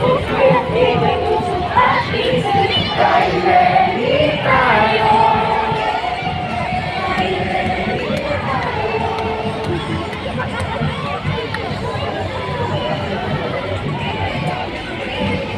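A large crowd outdoors cheers and chants loudly.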